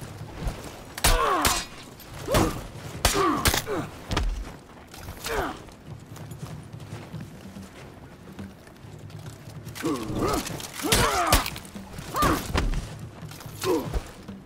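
Steel blades clash and ring sharply.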